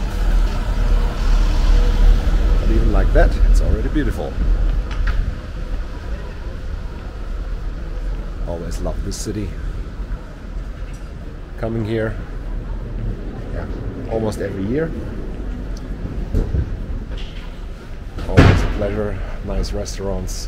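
A middle-aged man talks cheerfully close to the microphone.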